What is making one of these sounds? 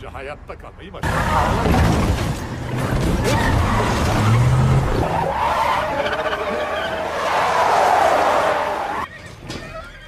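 A truck engine roars at speed.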